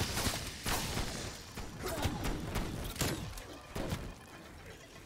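A gun fires in sharp, separate shots.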